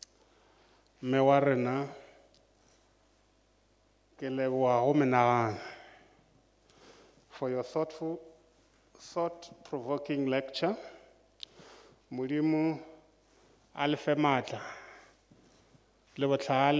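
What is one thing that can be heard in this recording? A man speaks slowly and formally into a microphone, pausing between phrases.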